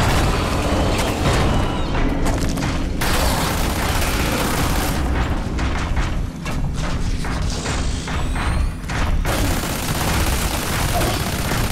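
Sharp explosions boom.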